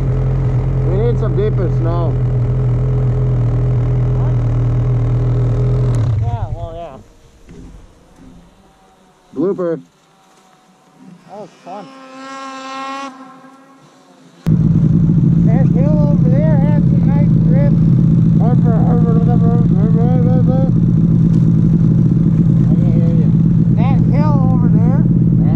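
A snowmobile engine runs with a loud, deep rumble.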